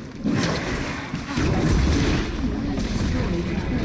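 A tower crumbles with a heavy crash.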